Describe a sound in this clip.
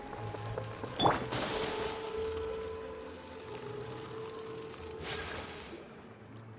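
A magical blast bursts with a sharp crack and a shimmering whoosh.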